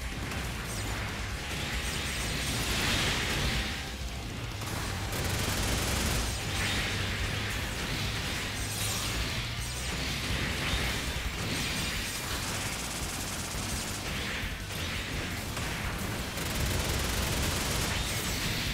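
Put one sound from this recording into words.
Blasts and explosions burst during a fight.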